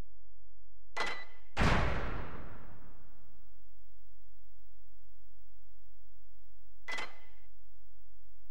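Short electronic menu chimes and whooshes sound.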